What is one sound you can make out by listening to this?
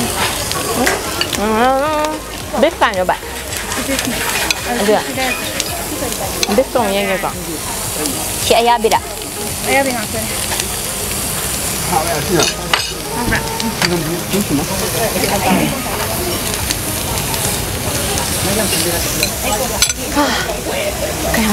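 Chopsticks and utensils clink against plates and bowls.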